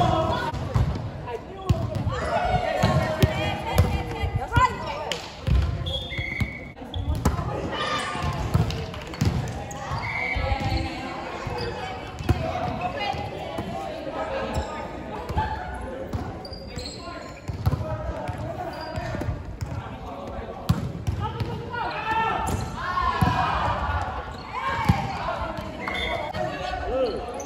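Young men and women talk and call out to each other.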